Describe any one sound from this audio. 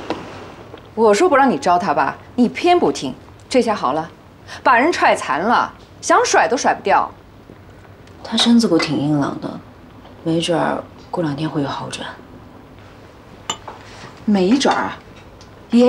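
A middle-aged woman speaks calmly and earnestly, close by.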